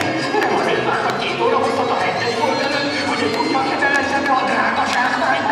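An audience murmurs in the background.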